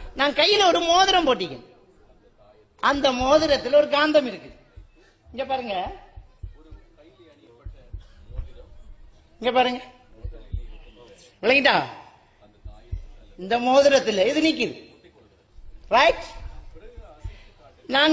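A man speaks with animation through a microphone, in short bursts with pauses.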